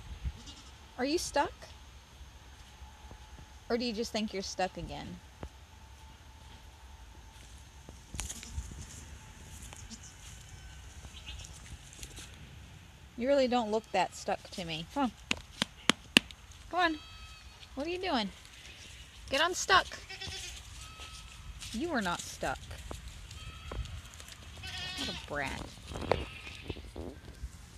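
A goat bleats loudly close by.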